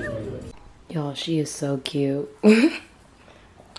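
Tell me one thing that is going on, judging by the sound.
A small puppy yelps and barks.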